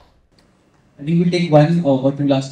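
A young man speaks through a microphone.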